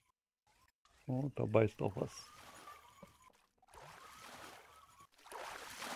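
A fishing reel whirs as line is wound in quickly.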